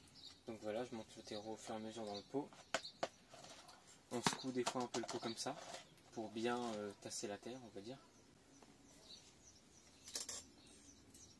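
A small trowel scrapes and pours soil into a plastic pot.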